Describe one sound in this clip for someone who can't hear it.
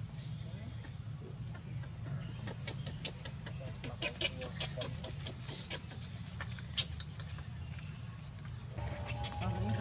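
Dry leaves rustle and crackle as small monkeys scramble about.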